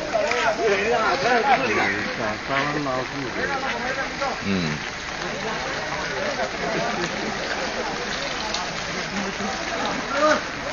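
A crowd of men shout excitedly nearby.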